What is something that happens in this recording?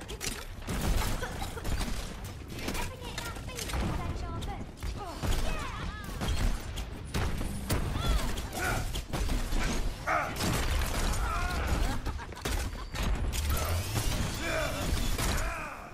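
A weapon fires rapid bursts of shots.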